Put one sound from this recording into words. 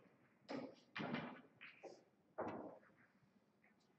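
A cue strikes a pool ball with a sharp tap.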